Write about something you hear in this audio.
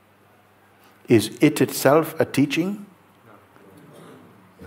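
An elderly man speaks calmly and close to a microphone, with long pauses.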